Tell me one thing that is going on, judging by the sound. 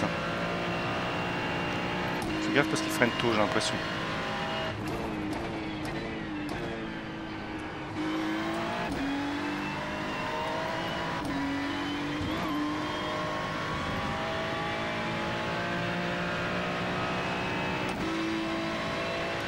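A racing car engine roars and shifts gears up and down steadily.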